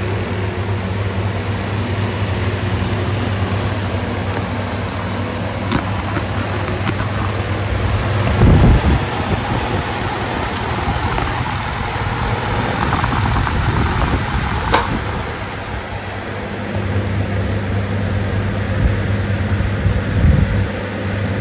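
An electric fan hums and whirs steadily.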